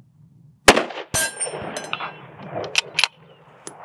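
A rifle bolt clicks as it is worked.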